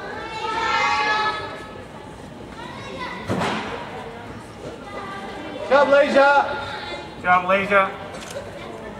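Young women cheer and call out loudly in a large echoing hall.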